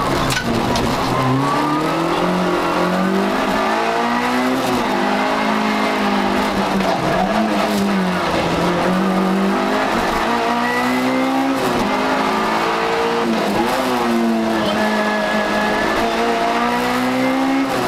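A car engine roars loudly from inside the cabin, revving up and down as the gears shift.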